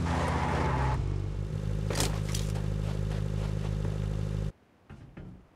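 A vehicle engine idles with a low hum.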